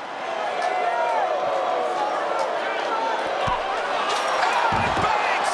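A crowd cheers loudly throughout.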